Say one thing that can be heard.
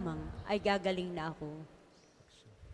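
A man sings through a microphone in an echoing hall.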